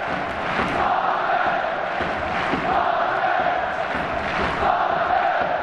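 Players clap their hands.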